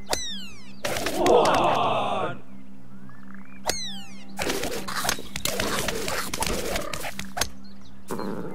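Coins jingle and scatter in a quick burst.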